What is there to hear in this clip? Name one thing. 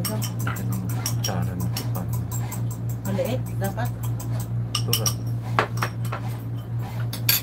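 A spoon scrapes and taps against a bowl.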